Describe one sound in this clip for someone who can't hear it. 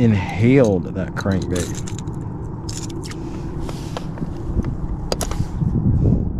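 Metal pliers click on a crankbait's hooks.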